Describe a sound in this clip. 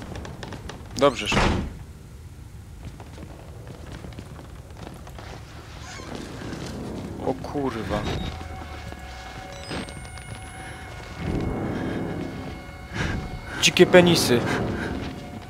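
A young man shouts in fright into a close microphone.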